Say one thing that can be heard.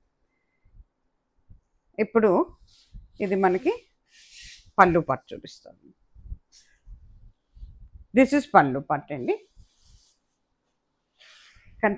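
Fabric rustles as a sari is unfolded and held up.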